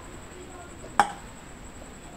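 A plastic cup is set down on a glass tabletop.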